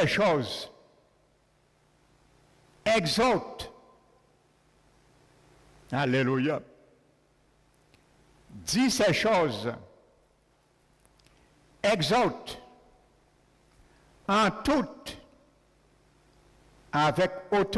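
A middle-aged man speaks slowly into a microphone, in short phrases with pauses, in a reverberant hall.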